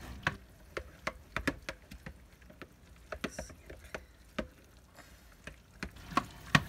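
A spoon scrapes and clinks against a glass bowl while stirring a crumbly mixture.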